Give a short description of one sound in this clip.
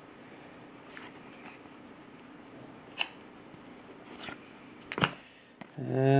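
Cards rustle and tap softly as hands handle them.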